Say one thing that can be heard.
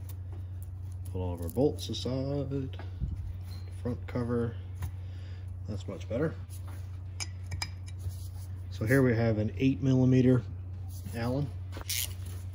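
Small metal parts clink softly as they are handled.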